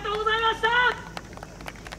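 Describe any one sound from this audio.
A group of young performers chants loudly in unison outdoors.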